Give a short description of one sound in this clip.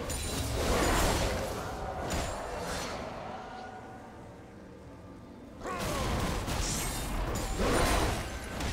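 Video game combat effects clash and crackle in bursts.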